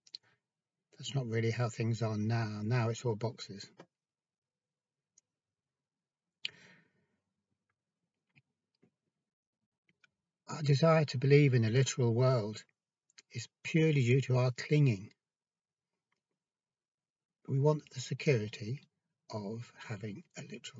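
An older man speaks calmly and close, in short bursts with pauses.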